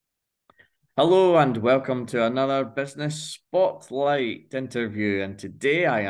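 A man speaks cheerfully over an online call.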